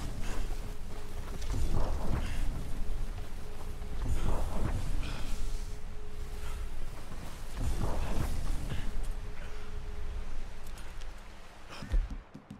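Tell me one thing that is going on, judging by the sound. Footsteps crunch through deep snow.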